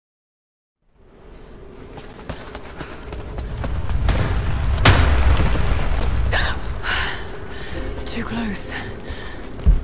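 Footsteps crunch over stone and rubble.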